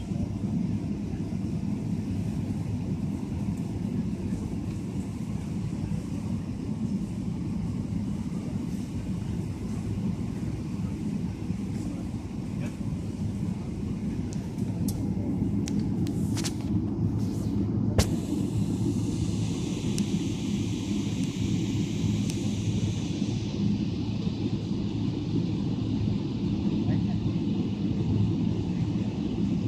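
An aircraft cabin fills with a steady, low engine rumble.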